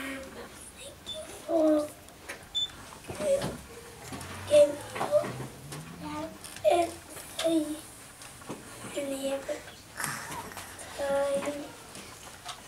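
A woman speaks gently and close by.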